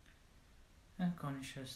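A man begins speaking calmly and close into a microphone.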